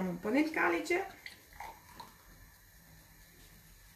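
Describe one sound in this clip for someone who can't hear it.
Sparkling wine pours and fizzes into a glass.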